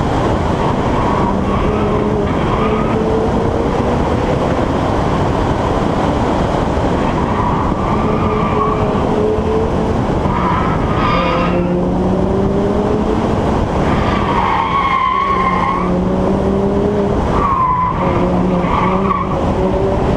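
Tyres hiss steadily on a wet road.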